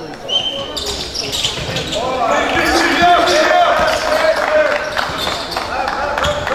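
Sneakers squeak sharply on a court floor.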